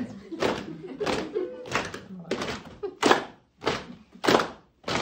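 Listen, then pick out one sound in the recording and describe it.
A group of people clap their hands in a slow, steady rhythm.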